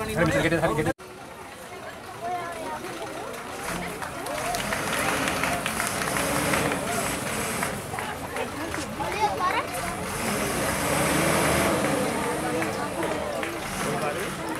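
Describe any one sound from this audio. A truck engine rumbles.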